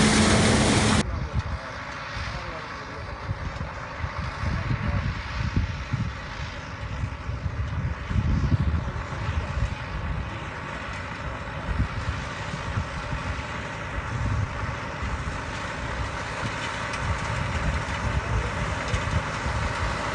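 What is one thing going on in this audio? Wind gusts and rumbles across the microphone.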